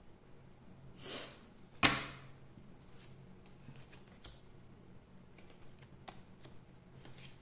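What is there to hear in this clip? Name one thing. A card slaps softly onto a table.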